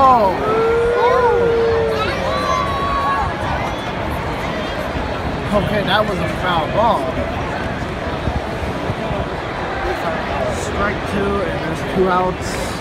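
A large crowd murmurs and chatters in an open stadium.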